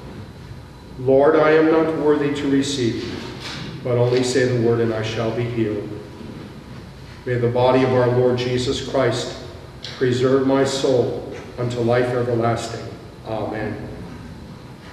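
An elderly man chants or recites through a microphone in a large echoing hall.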